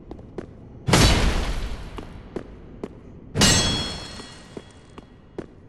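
A heavy body crashes and rolls on stone floor.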